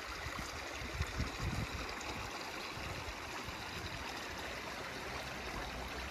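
A small stream trickles softly.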